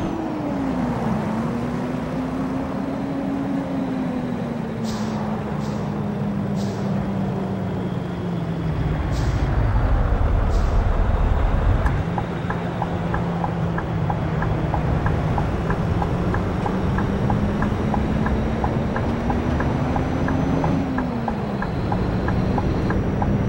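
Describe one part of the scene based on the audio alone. A bus engine hums steadily, its pitch rising and falling as it changes speed.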